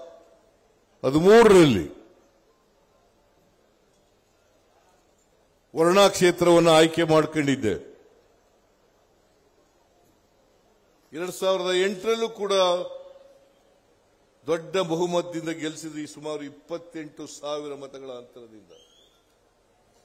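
An elderly man speaks forcefully into a microphone, heard through loudspeakers with pauses between phrases.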